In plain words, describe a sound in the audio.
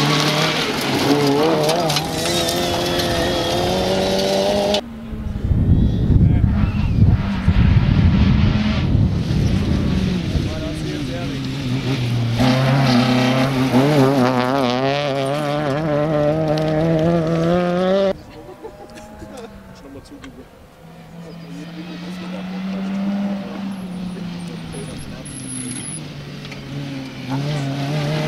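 A rally car engine revs hard and changes gear, loud and close.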